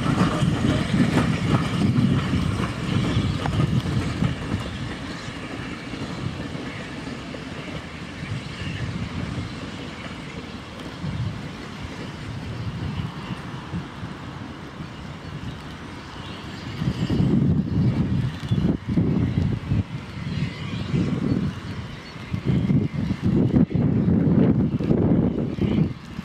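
A steam locomotive chuffs heavily as it hauls a train past.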